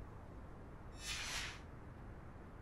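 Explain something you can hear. A sheet of paper rustles briefly.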